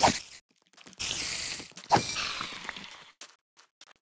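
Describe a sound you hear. A spider hisses.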